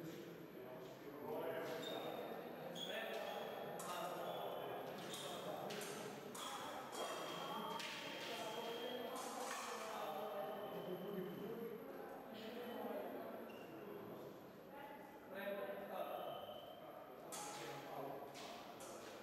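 Fencing blades clash and scrape in a large echoing hall.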